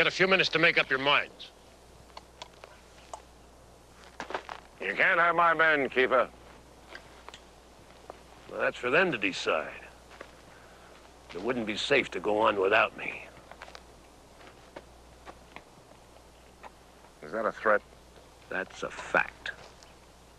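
An older man answers in a low, measured voice.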